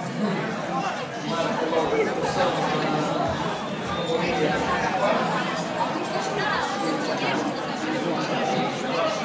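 A crowd of people shouts and chatters excitedly outdoors.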